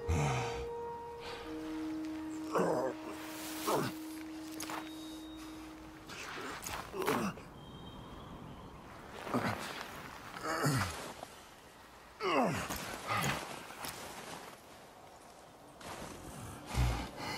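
Snow crunches as a man crawls and drags himself along.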